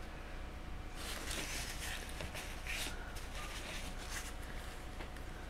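A cloth rubs and rustles against a surface.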